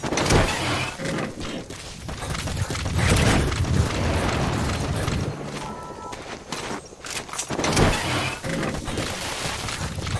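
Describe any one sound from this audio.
Footsteps crunch on dry dirt and grass.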